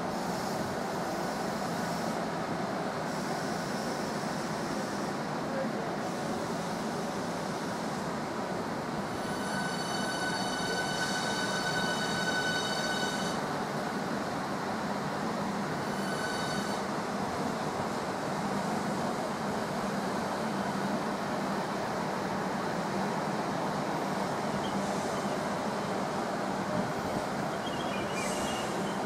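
A train rumbles steadily past along the tracks, heard in an echoing station.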